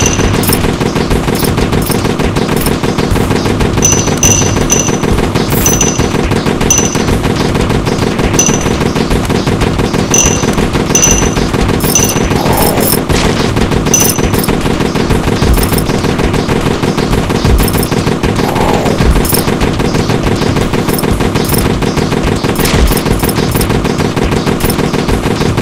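Gunfire pops rapidly and keeps going.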